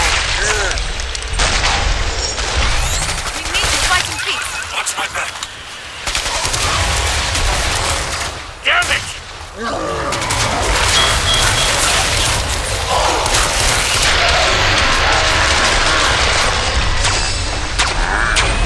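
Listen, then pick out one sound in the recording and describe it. A gun's magazine is swapped with metallic clicks.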